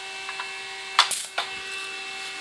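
Metal tools clink and rattle as they are handled.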